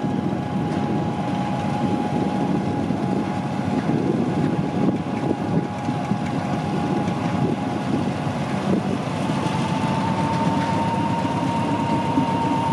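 Train wheels clatter and screech on the rails.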